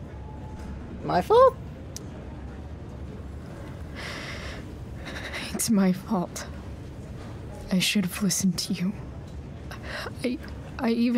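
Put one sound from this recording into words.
A young woman speaks softly and sadly, close up.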